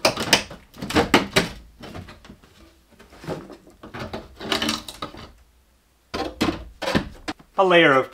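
Wooden boards knock and scrape as they are lifted and set down.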